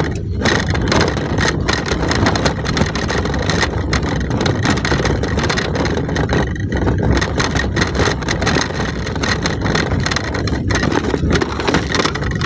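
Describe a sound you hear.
A vehicle's engine rumbles steadily while driving.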